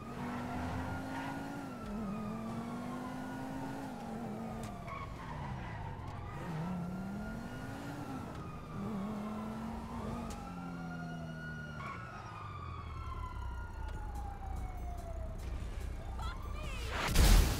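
A sports car engine revs up and shifts through gears.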